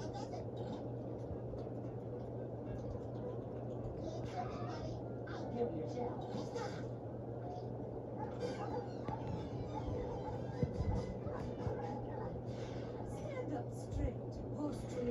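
A television plays a cartoon soundtrack, heard across a small room.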